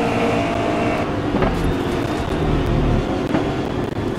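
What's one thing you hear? Tyres skid and scrape over gravel.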